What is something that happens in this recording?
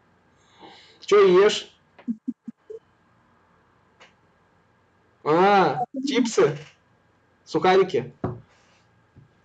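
A man talks cheerfully over an online call.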